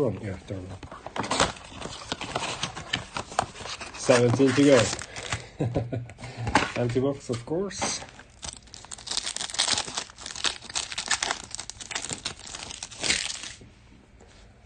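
Plastic wrappers crinkle and tear as they are ripped open.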